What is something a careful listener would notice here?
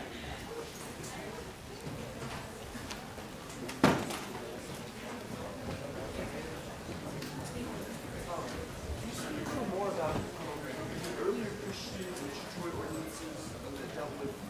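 A crowd of people chatters in a large hall.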